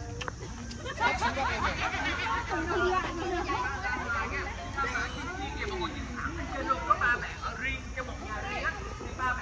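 Young children chatter excitedly close by.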